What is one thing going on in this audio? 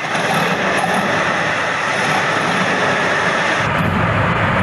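A heavy tracked vehicle's engine roars loudly.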